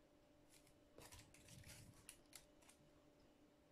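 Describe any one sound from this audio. A foil-covered cake board crinkles as it is moved by hand.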